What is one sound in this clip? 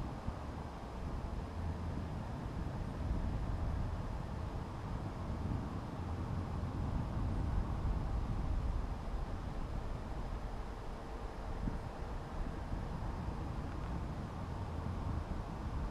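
Wind buffets and rumbles steadily against the microphone high outdoors.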